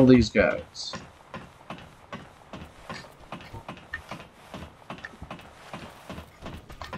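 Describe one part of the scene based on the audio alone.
Footsteps clank rhythmically on a metal ladder.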